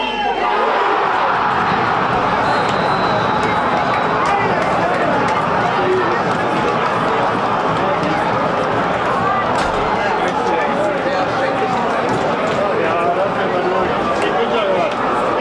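A large crowd cheers and roars loudly outdoors.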